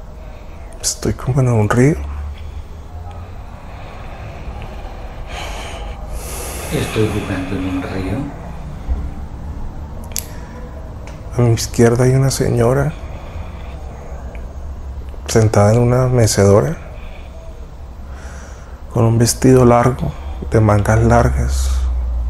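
An elderly man speaks calmly in short bursts, close by.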